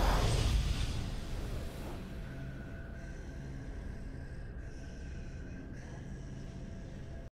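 A triumphant game fanfare swells and then settles into a soft sustained chord.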